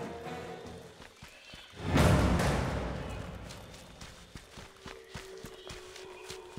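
Footsteps tread steadily on dirt.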